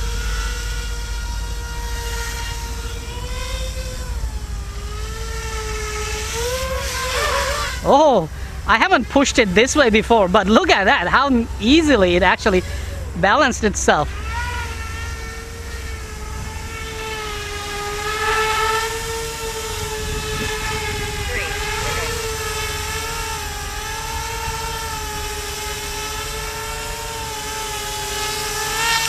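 A model helicopter's electric motor whines steadily close by.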